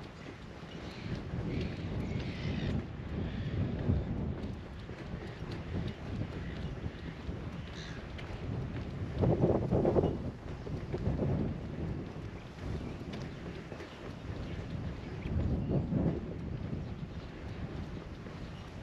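Wind gusts and rumbles outdoors, rising and falling.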